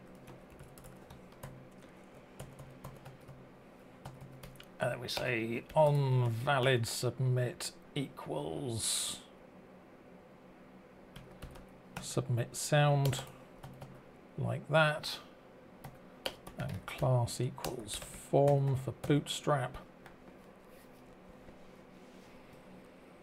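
Keys clatter as a man types on a keyboard.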